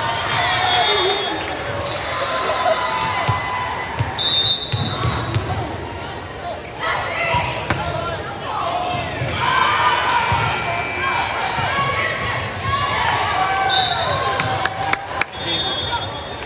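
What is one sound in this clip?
Young women shout and call out to each other across the court.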